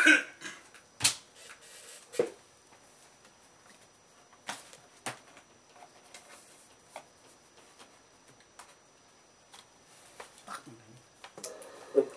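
Clothing rustles and objects knock close by.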